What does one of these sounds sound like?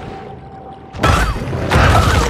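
Loud rushing bursts of water sound as a creature attacks.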